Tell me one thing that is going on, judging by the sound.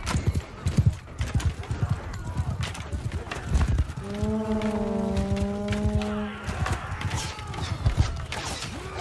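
Weapons clash in a loud battle.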